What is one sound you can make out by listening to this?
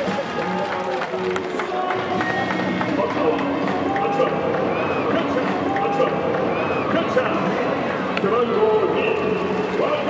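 A crowd in a large stadium cheers and chants.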